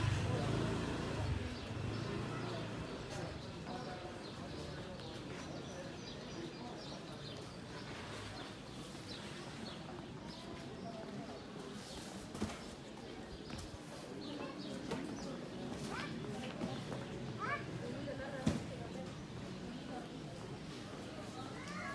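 Footsteps walk on paving stones outdoors.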